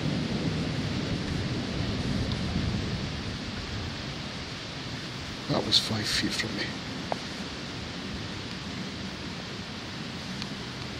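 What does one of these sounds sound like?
River water ripples and flows.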